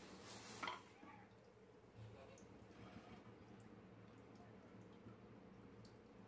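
Liquid bubbles and simmers in a pot.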